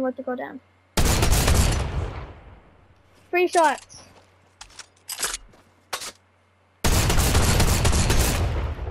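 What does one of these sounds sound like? A gun fires loud, booming shots.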